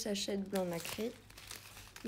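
A clear plastic film crackles as it is peeled back.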